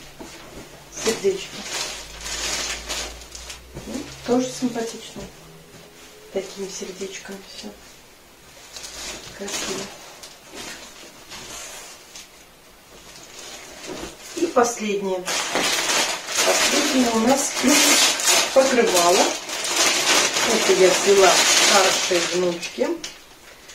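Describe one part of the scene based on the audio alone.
A middle-aged woman talks calmly, close by.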